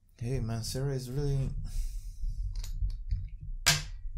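A glass bottle is picked up and clinks against the table.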